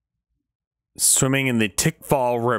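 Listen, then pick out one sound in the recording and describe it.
A young man speaks loudly and close to a microphone.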